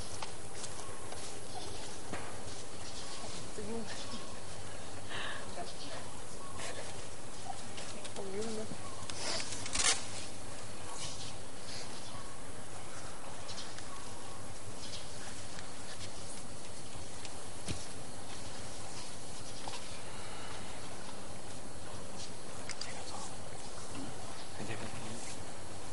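A group of young men and women talk quietly at a distance outdoors.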